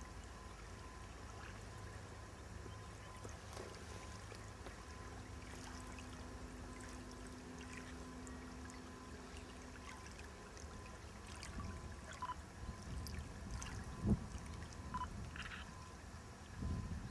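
Small waves lap at a grassy lake shore.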